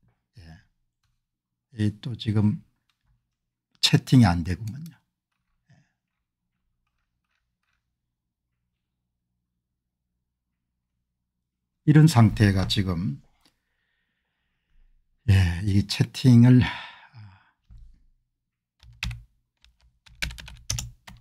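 A middle-aged man speaks calmly into a close microphone, with long pauses.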